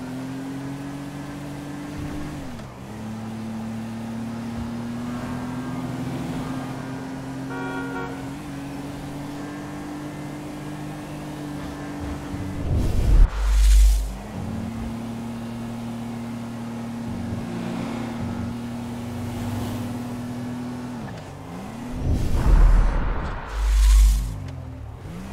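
A car engine hums steadily and shifts through gears as the car speeds along.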